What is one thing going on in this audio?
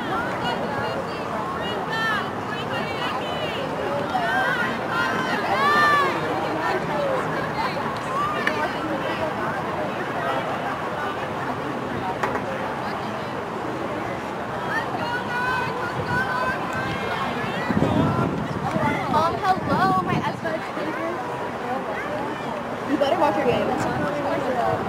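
Young women cheer and shout together outdoors.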